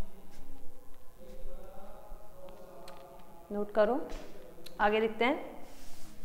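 A woman speaks steadily, as if lecturing, close by.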